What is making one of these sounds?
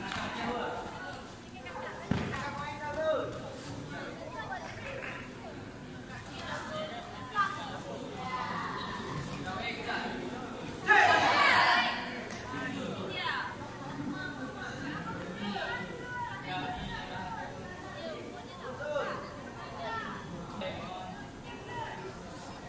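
Voices of a crowd chatter in a large echoing hall.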